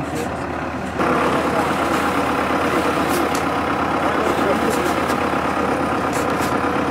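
A loader engine rumbles loudly.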